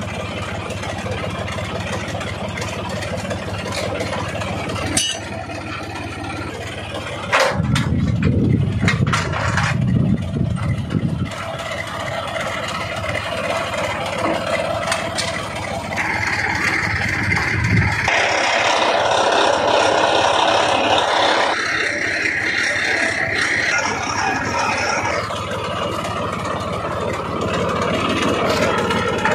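A diesel engine runs with a steady rumble close by.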